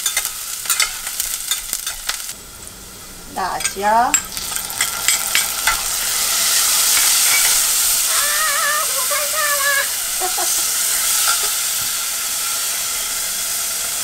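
A metal spatula scrapes and clinks against a pot.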